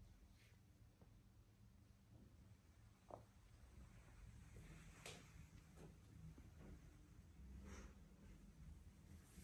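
Fabric rustles softly as a body shifts on an exercise mat.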